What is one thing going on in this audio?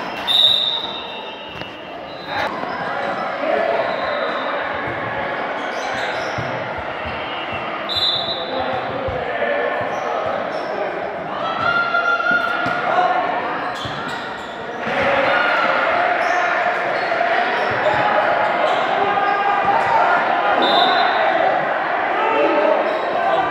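A crowd of players and spectators chatters and calls out in a large echoing hall.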